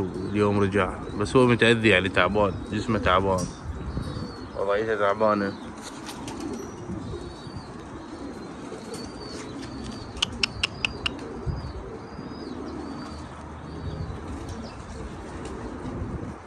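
Pigeons coo and flutter nearby.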